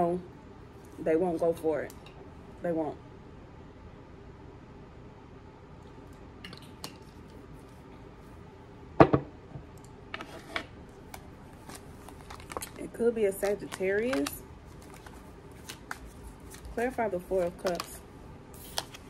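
A woman speaks calmly and close by in short bursts.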